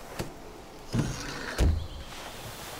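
A metal can clinks as a hand picks it up.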